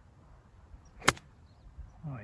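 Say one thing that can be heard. A golf iron strikes a ball off turf with a sharp click.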